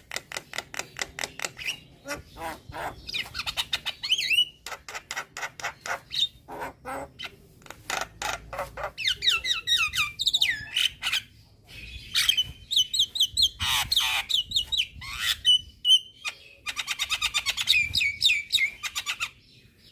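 A myna bird sings loud, rapid chirps, trills and whistles close by.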